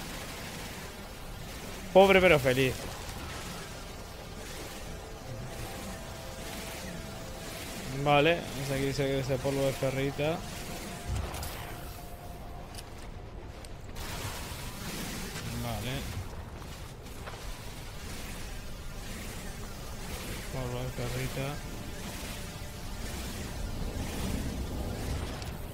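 A mining laser hums steadily as it cuts into rock.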